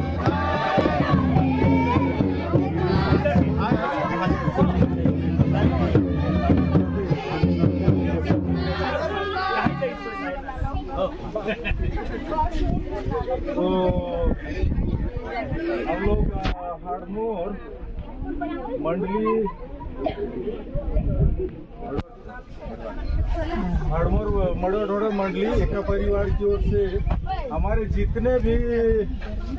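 A crowd of women and men chatter and talk at once close by, outdoors.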